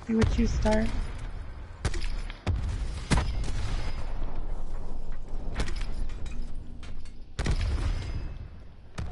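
A rifle fires sharp, loud shots.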